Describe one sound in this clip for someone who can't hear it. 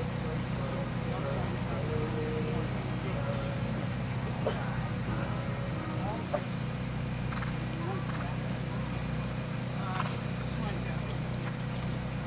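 A horse trots on grass with soft, muffled hoofbeats.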